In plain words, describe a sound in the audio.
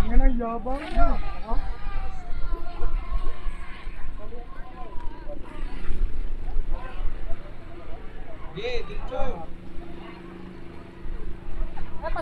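Small model boat motors buzz steadily out on the water.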